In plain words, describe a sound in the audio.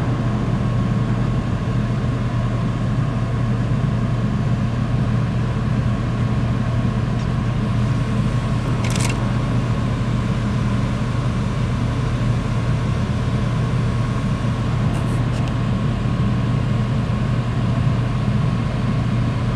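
A boat's engine hums low and steady throughout.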